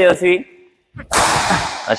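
A racket smashes a shuttlecock with a sharp crack.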